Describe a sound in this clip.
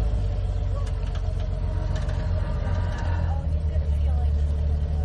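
An engine rumbles low and strains as a truck crawls over rocks.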